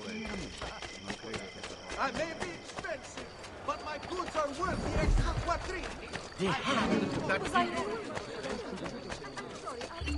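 Quick footsteps run over stone paving.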